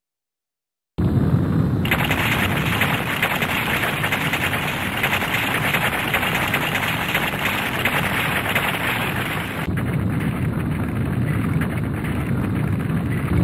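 Falling stone rumbles and crashes in a steady, loud roar.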